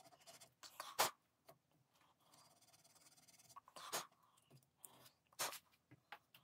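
Small metal parts click and scrape as they are fitted by hand.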